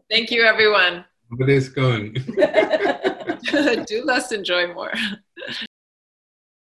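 A middle-aged woman speaks cheerfully over an online call.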